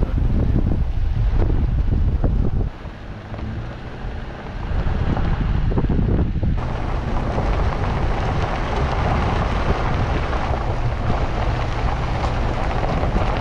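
Tyres crunch and rattle on gravel.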